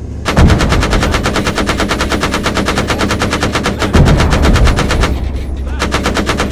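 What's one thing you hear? A rapid-fire cannon shoots in fast, steady bursts.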